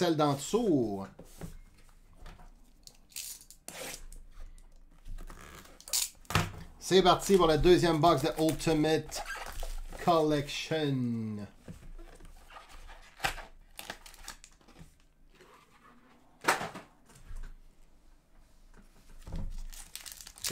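Cardboard packs slide and tap on a table.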